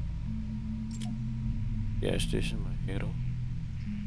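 Short game menu clicks sound a few times.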